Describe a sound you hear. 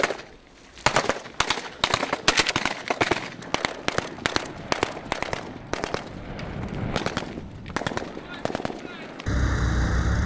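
Rapid rifle shots crack nearby.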